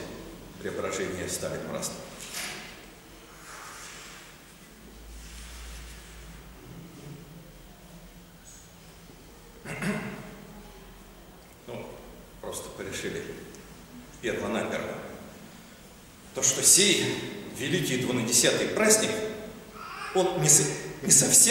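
An elderly man speaks calmly and slowly, with pauses, close to the microphone, in a room with a slight echo.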